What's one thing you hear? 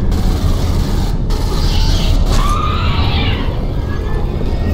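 A creature shrieks loudly nearby.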